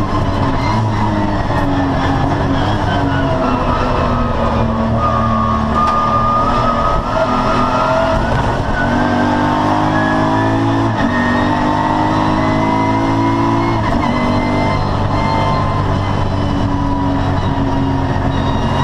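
A race car engine roars loudly from inside the cabin, revving up and down through gear changes.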